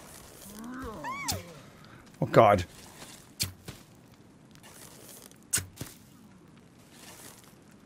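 A bow string twangs as arrows are shot.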